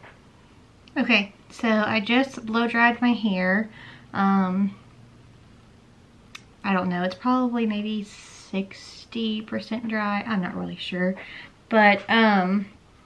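A young woman talks casually, close to a microphone.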